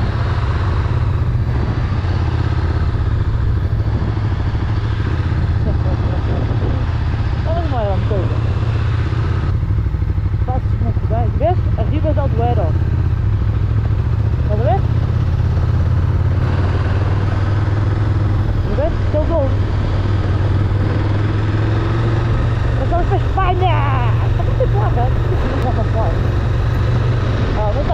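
A motorcycle engine rumbles steadily at close range.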